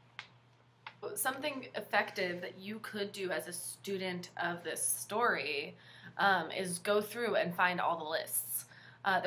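A young woman speaks close up, calmly and with animation.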